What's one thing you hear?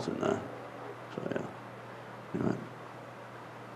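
A man speaks into a microphone in short bursts.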